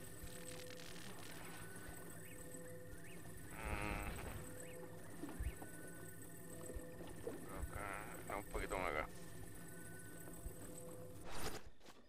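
An electronic hum pulses steadily while a glowing beam holds an object.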